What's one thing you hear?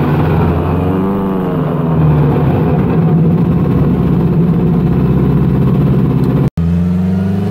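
A car engine drones loudly from inside the cabin.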